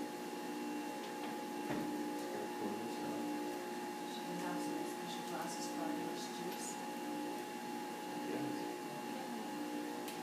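A middle-aged woman speaks nearby.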